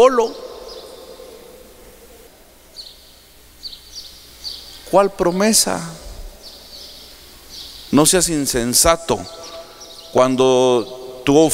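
A middle-aged man preaches with animation into a microphone, heard through loudspeakers in a large echoing hall.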